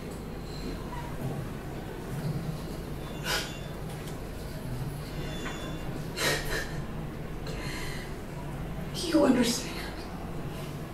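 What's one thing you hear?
A man speaks calmly through loudspeakers in a room.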